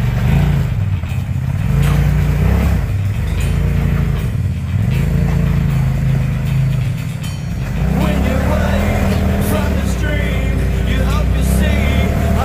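Tyres crunch and scrape over rock.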